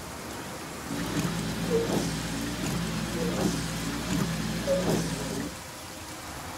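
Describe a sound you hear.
A windscreen wiper swishes back and forth.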